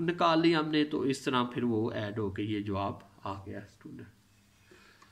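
A man explains calmly into a microphone.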